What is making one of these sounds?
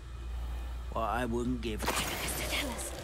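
A magic spell bursts with a crackling whoosh.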